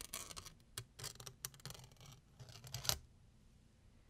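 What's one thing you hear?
Fingers rub and crinkle crisp foil close to a microphone.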